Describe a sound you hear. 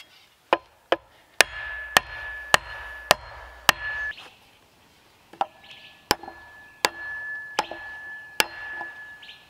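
An axe chops into wood with sharp, repeated knocks.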